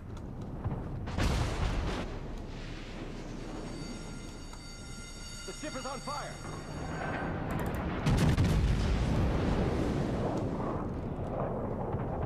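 Heavy naval guns fire with deep booming blasts.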